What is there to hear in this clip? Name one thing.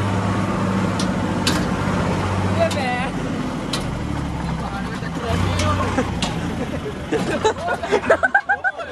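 A metal cart rattles and clanks as it is pushed.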